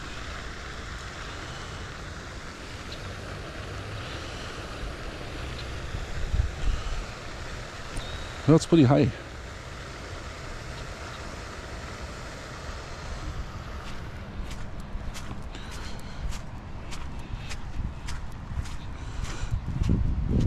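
Wind blows and rumbles against the microphone outdoors.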